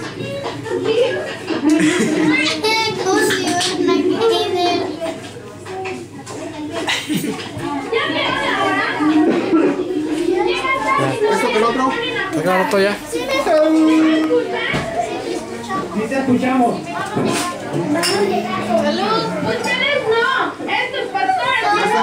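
Several men and women talk and chatter close by at once.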